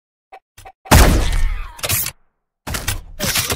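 A rifle fires a single loud shot in a video game.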